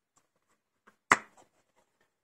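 A plastic disc case clicks open.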